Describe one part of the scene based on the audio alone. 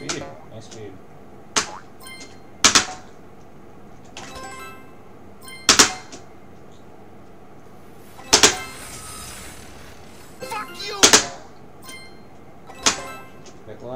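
Short game sound effects chime and pop as a bouncing ball jumps and collects items.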